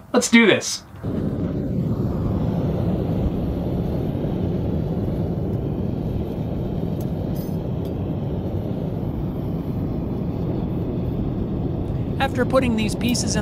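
A gas forge roars steadily.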